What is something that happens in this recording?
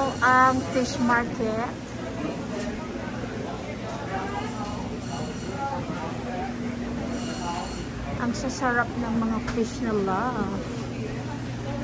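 Men and women chat nearby in a busy indoor space.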